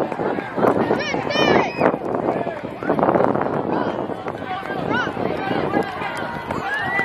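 Young boys cheer and shout excitedly.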